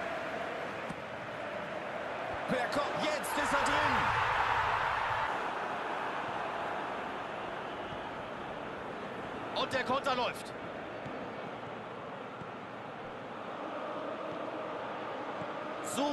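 A large stadium crowd roars steadily, swelling into a loud cheer for a few seconds.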